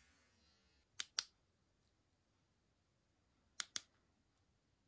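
A small plastic connector clicks.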